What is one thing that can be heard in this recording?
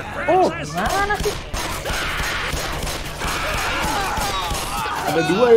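Gunshots bang in quick bursts.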